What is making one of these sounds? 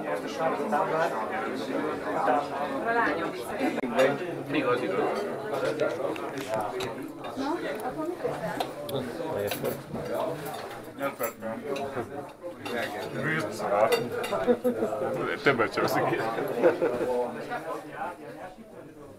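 Men and women chat over one another in a busy room.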